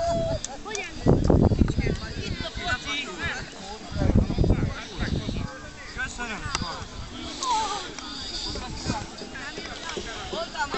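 Children shout and chatter outdoors nearby.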